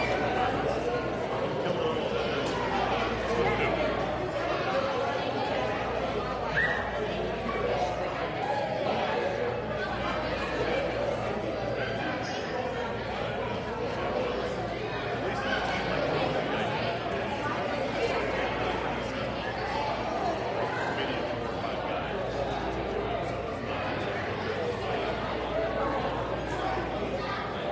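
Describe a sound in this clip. A crowd of people chatter in a large echoing hall.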